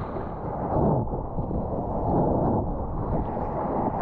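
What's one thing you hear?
Water splashes against a surfer paddling.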